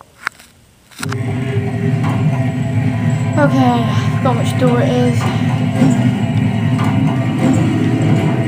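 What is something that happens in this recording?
Video game music plays loudly from a television.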